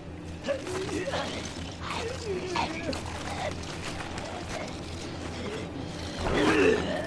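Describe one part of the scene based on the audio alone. A man groans and gasps in pain.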